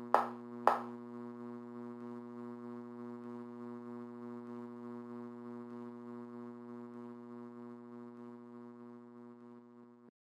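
Low, eerie game music drones steadily and slowly fades out.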